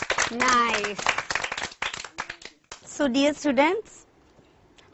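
A group of children sing together.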